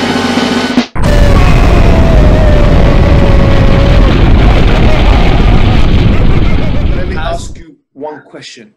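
A huge explosion booms and rumbles deeply.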